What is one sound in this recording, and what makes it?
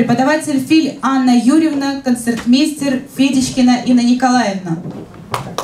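A woman speaks with animation through a microphone in an echoing hall.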